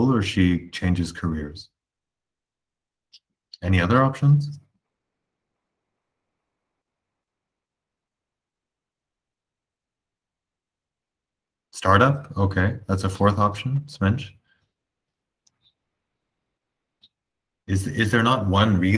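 A man speaks calmly in short bursts over an online call, with long pauses.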